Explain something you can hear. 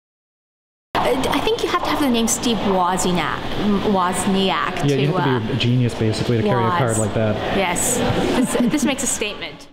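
A young woman speaks cheerfully and close to a microphone.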